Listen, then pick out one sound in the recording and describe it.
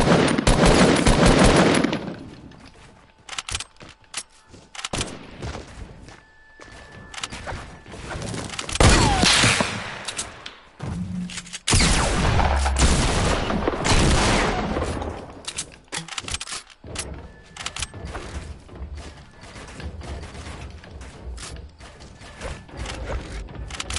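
Building pieces snap into place with quick clacks.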